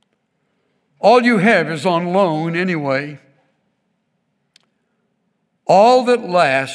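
An elderly man speaks slowly and expressively into a microphone, with pauses.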